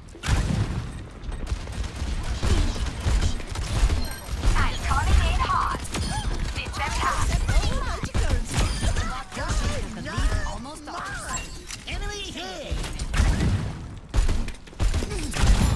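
A grenade launcher fires with repeated heavy thumps.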